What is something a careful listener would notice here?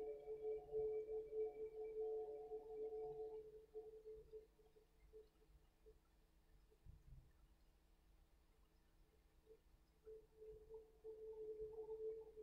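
An elderly man hums a long, steady note close to a microphone.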